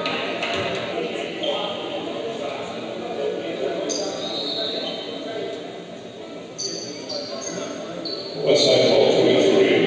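A crowd murmurs and then cheers loudly in an echoing hall.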